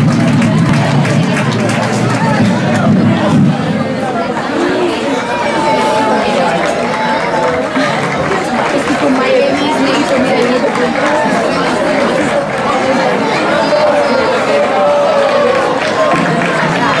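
A crowd of children chatter and shout outdoors.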